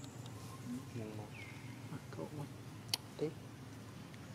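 A baby monkey squeaks softly close by.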